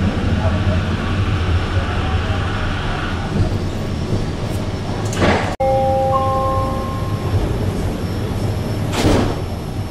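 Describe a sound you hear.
A train hums and rumbles steadily as it rolls slowly along the track.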